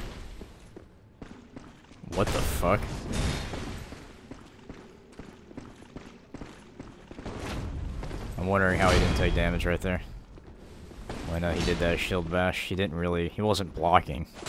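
Heavy blades swing and strike with metallic clangs.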